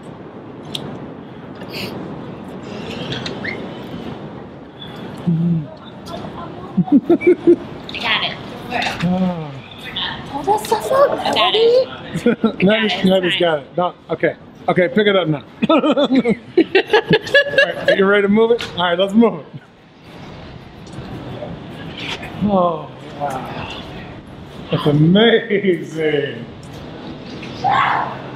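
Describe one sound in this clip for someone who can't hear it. Young women talk and laugh close by.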